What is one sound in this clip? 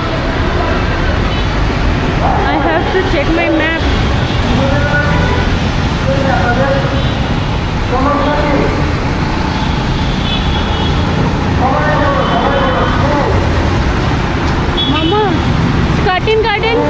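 Street traffic rumbles steadily.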